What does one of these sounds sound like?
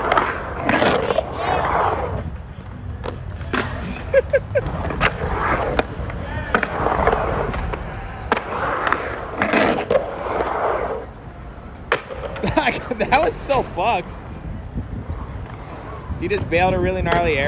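Skateboard wheels roll and roar across concrete.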